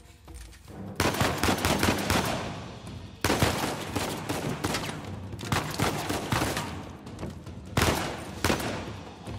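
Pistol shots crack one after another, echoing loudly.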